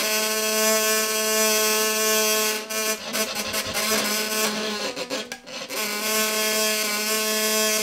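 A hurdy-gurdy plays a melody from pressed keys.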